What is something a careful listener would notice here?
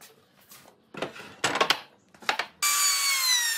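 A wooden panel knocks against a wooden frame.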